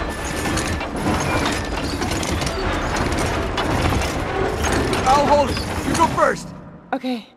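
A metal winch grinds and creaks as it is turned.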